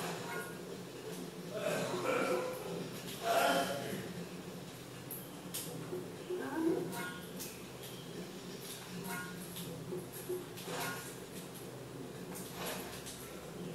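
Rain patters steadily in a video game.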